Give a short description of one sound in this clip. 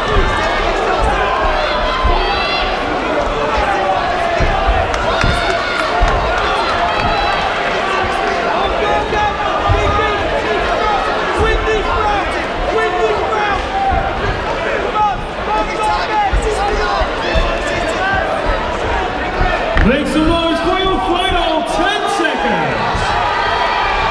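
A crowd in a large hall cheers and shouts steadily.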